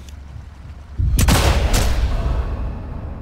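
A rifle shot bangs loudly and echoes away.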